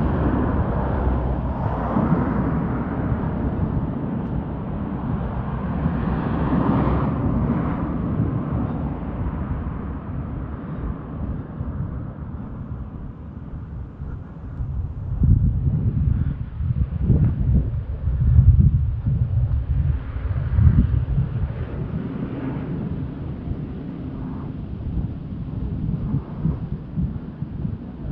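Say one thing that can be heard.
Wind rushes and buffets outdoors.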